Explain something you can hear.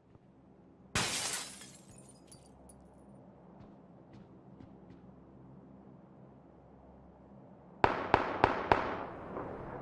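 Gunshots crack in quick bursts, echoing indoors.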